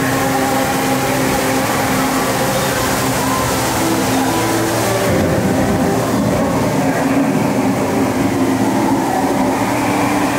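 Music plays through loudspeakers in a large echoing space.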